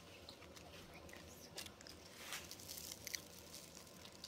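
Crispy fried batter crackles as fingers pull it apart.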